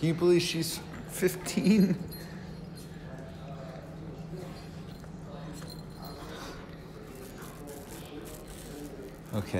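A hand rubs and pats a dog's fur close by.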